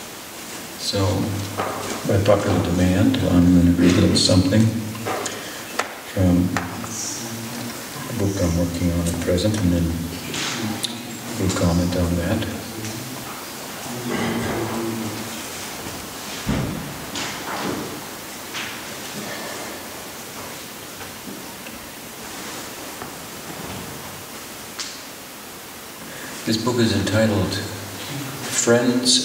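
An older man speaks calmly into a microphone, pausing now and then.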